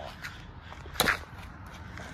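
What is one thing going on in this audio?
A water balloon slaps onto pavement.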